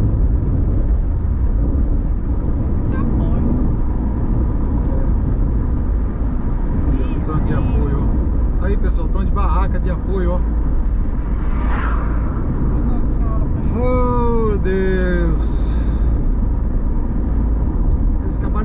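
A car engine hums and tyres roll steadily on a paved road, heard from inside the car.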